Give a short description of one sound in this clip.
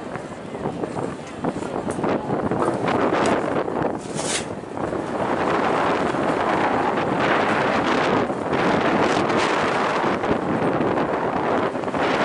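Wind blusters loudly outdoors.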